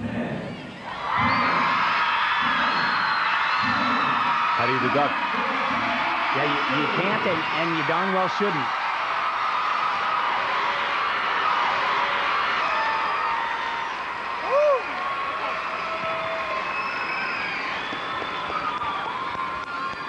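A large crowd cheers and applauds loudly in a big echoing arena.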